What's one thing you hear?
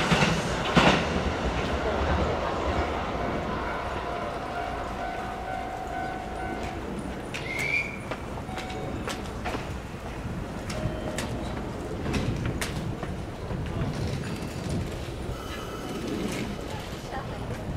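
A train approaches softly over the tracks from a distance.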